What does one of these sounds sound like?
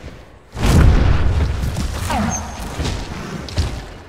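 Wings flap heavily in a loud whoosh.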